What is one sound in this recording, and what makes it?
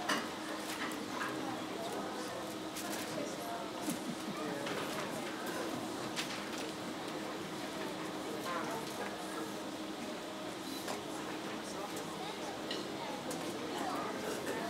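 A band plays in a large echoing hall.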